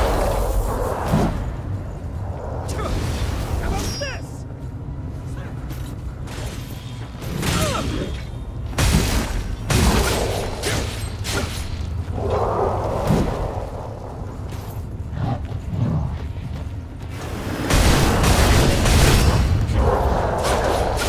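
Blades slash and strike monsters with heavy, wet impacts.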